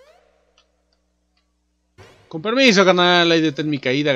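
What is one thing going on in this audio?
A short electronic chime plays as a coin is collected in a game.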